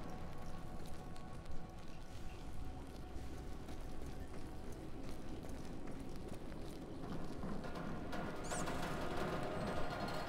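Flames crackle steadily close by.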